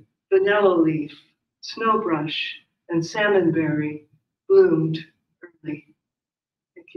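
A man speaks calmly into a microphone in a room.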